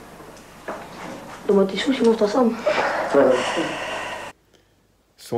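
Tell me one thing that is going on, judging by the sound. A boy talks on an old, hissy recording.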